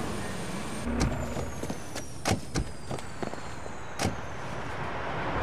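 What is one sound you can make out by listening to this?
Footsteps tap on concrete.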